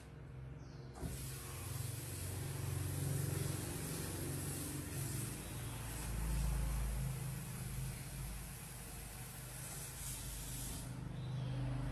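Water runs from a tap into a sink.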